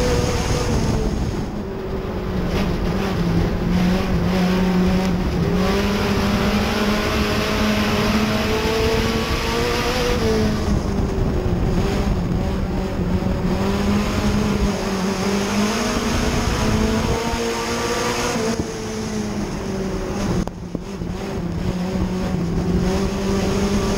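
A race car engine roars loudly up close, its pitch rising and falling with the throttle.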